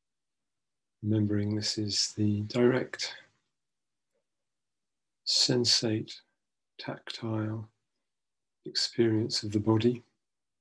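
A middle-aged man speaks slowly and calmly through an online call.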